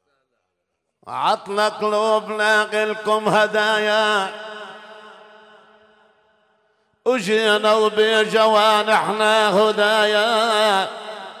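An elderly man sings loudly through a microphone in a long wavering melody.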